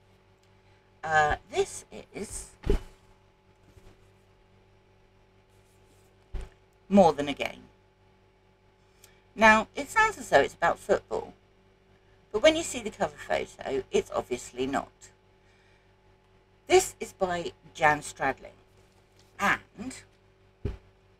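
A middle-aged woman talks calmly and close up, as if over an online call.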